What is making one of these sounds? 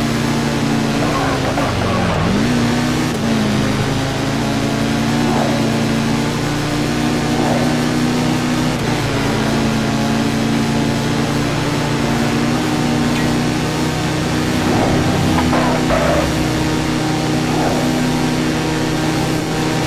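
A motorcycle engine roars steadily at high speed, its pitch dipping briefly.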